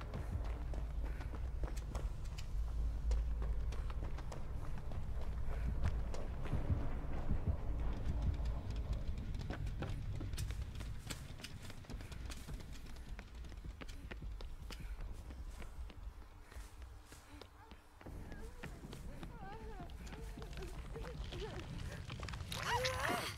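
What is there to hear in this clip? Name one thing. Quick footsteps run over hard ground and then through grass.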